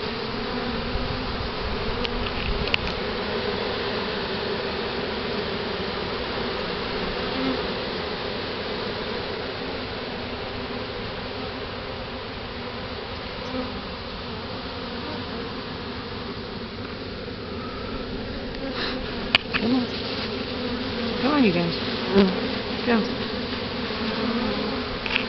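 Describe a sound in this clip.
Bees buzz loudly and steadily close by.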